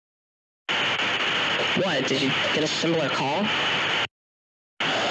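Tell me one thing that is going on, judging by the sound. A woman speaks calmly over a phone line.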